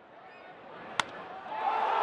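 A wooden bat cracks sharply against a baseball.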